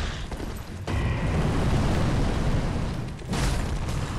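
Fire roars in a sudden blast.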